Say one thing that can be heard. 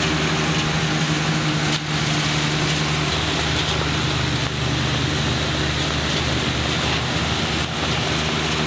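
A tractor engine rumbles steadily close by.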